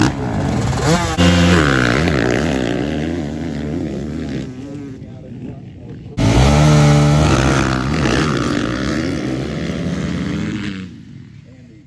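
Dirt bike engines rev loudly and roar away close by.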